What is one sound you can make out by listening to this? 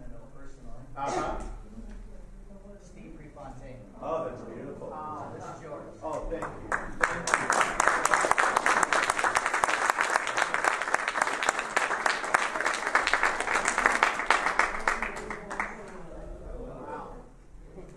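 A man speaks into a microphone in a large room.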